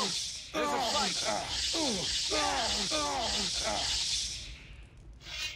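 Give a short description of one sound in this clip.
A magic spell crackles and hisses loudly.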